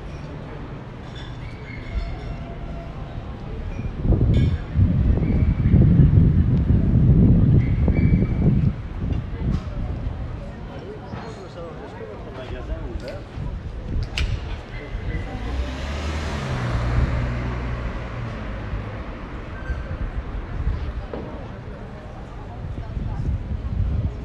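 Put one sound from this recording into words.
Traffic hums steadily along a city street outdoors.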